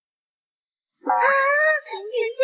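Two girls shriek in fright together.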